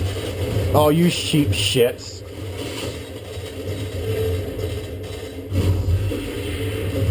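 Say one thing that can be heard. Video game sounds play from a television's speakers.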